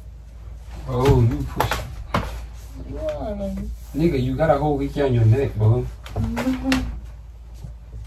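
A young man talks tensely, close by.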